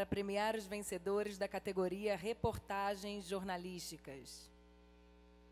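A woman speaks into a microphone in a calm, clear voice.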